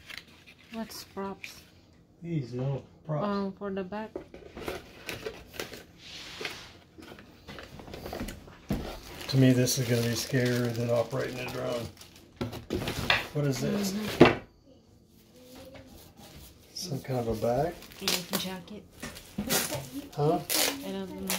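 Cardboard and plastic packaging rustles and crinkles in hands.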